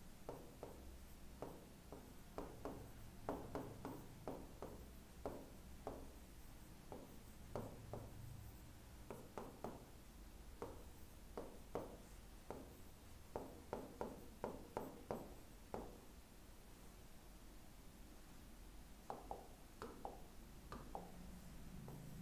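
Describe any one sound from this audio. A marker taps and scrapes on a board.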